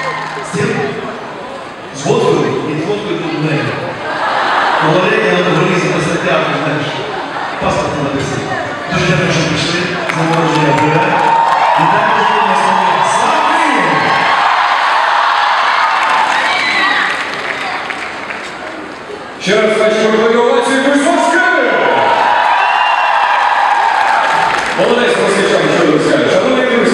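A young man sings loudly into a microphone over loudspeakers, in a large echoing hall.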